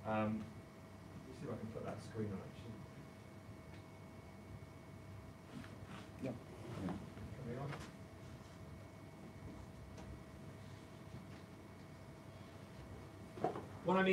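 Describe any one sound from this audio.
A man speaks at a distance in a room with some echo.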